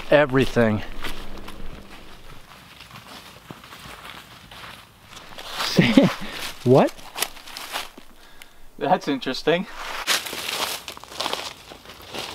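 Footsteps crunch through dry leaves.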